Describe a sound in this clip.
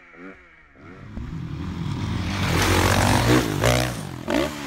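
A dirt bike engine roars loudly nearby.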